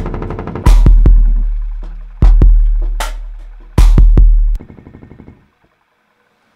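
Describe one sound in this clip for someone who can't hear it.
An electric guitar plays loud, ringing chords.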